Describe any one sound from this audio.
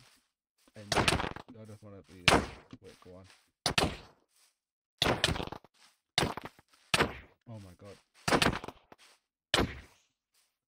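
Sword blows land with sharp, quick hits.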